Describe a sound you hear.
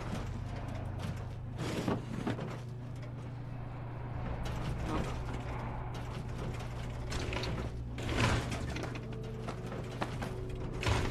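Footsteps thud on a hard floor scattered with debris.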